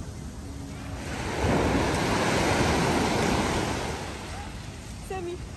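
Waves wash onto a beach and break.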